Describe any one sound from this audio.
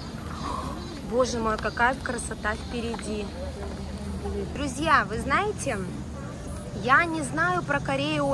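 Several men and women chatter nearby outdoors.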